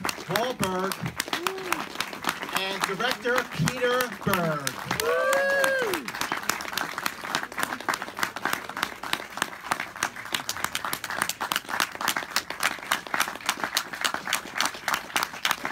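An audience claps and cheers steadily.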